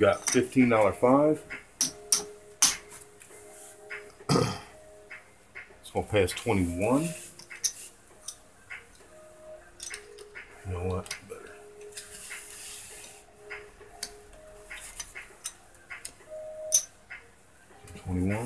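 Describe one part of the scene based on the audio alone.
Casino chips click and clatter as a hand stacks and moves them.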